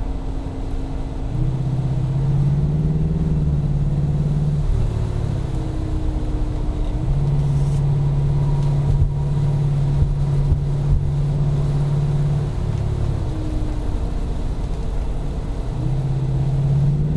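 A car engine hums steadily from inside, rising and falling in pitch as the driver changes speed.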